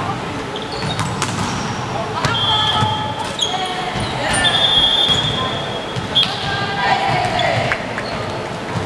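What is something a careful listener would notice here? Young women shout and call out to one another.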